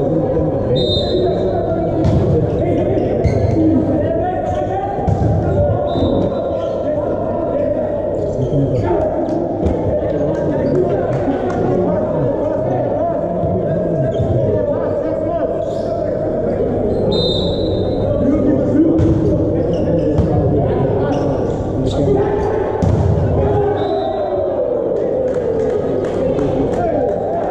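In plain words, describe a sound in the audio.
Young men shout and call to each other across a court.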